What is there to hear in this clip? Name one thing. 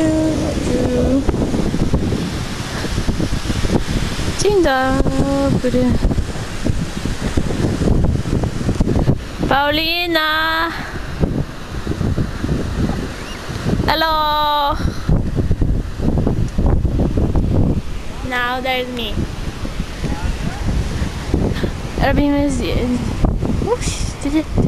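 A young woman close by talks in short, lively bursts.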